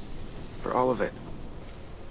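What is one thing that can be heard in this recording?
A young man speaks softly.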